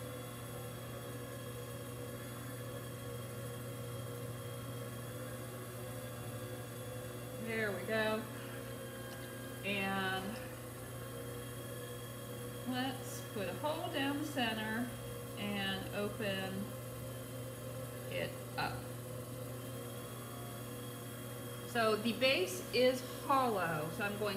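A potter's wheel hums steadily.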